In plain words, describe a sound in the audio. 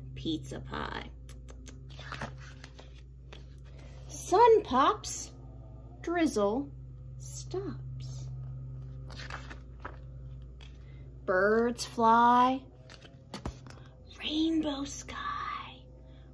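A young woman reads aloud with animation, close to the microphone.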